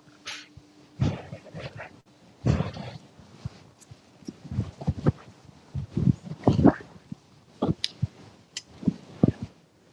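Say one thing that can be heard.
A woman speaks loudly and with animation close by.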